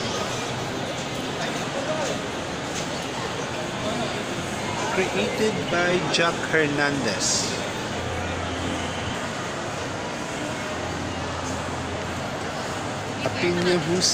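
A crowd murmurs and chatters in a large, echoing hall.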